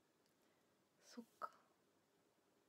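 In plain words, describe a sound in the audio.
A young woman speaks softly and briefly, close by.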